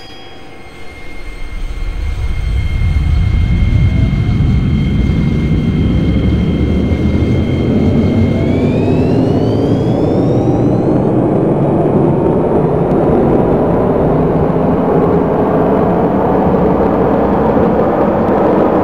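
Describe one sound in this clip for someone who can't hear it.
A train rumbles along the tracks, growing louder as it picks up speed.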